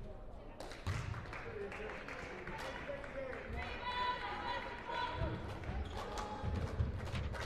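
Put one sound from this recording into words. Basketball sneakers squeak on a hardwood floor in a large echoing gym.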